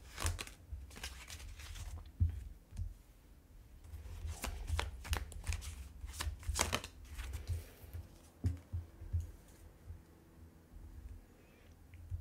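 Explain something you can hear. A card taps down onto a glass tabletop.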